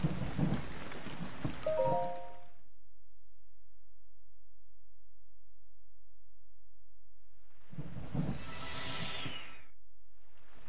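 A bright magical chime rings out and swells.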